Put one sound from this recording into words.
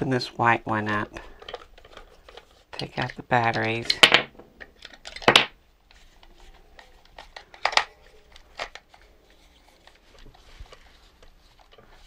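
A screwdriver squeaks and clicks as it turns small screws.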